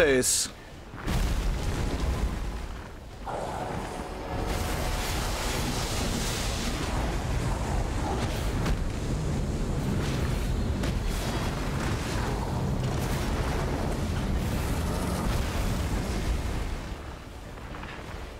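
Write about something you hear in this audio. Magical energy bursts and roars.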